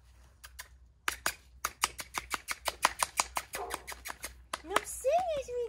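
A young woman claps her hands quickly.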